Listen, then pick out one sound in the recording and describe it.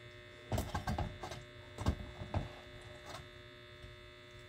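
A hand squishes and squelches soft tomatoes in a metal bowl.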